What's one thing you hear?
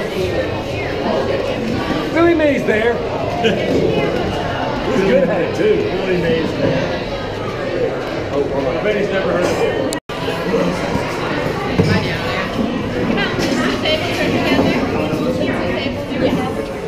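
Many people talk and chatter around the listener in a busy room.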